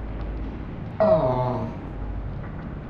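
A short cartoonish sound effect swoops downward.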